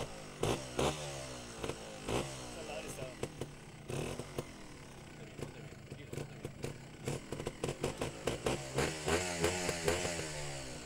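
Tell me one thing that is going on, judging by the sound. Motorcycle tyres knock against rock.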